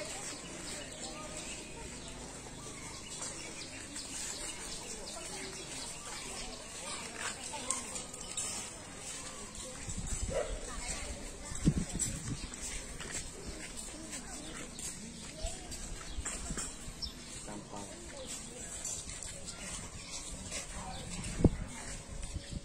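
Boys chatter quietly outdoors nearby.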